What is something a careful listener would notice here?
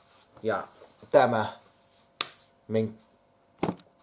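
A man speaks close by in short, lively bursts.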